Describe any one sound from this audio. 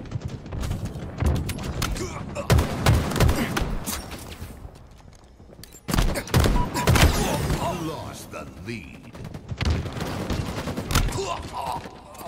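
Rapid gunfire bursts out in loud, sharp cracks.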